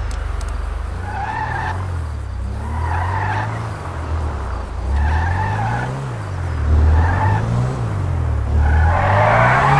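A car engine revs up and down again and again.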